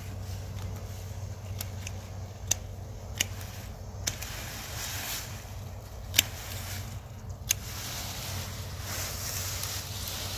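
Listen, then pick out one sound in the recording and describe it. Leafy plant stalks rustle as they are pulled and handled.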